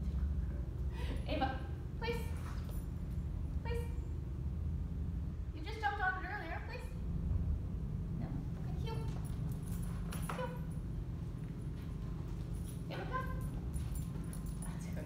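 A young woman gives short commands to a dog, close by.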